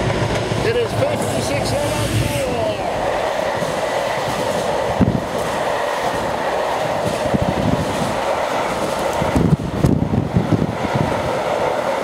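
Freight wagons clatter rhythmically over the rails.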